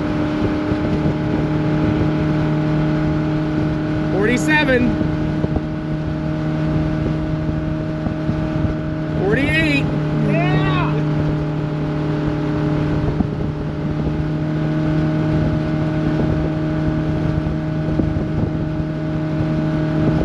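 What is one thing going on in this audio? A motorboat engine drones steadily at speed.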